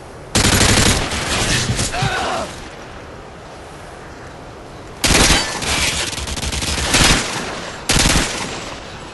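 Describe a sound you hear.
Rapid gunfire blasts in loud bursts.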